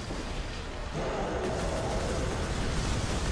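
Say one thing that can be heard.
An explosion roars and crackles.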